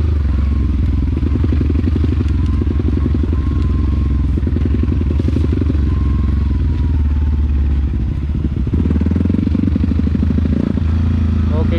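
A motorcycle engine chugs loudly up close, its pitch rising and falling with the throttle.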